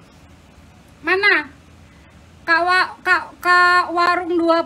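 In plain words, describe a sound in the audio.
A young woman speaks close by, with animation.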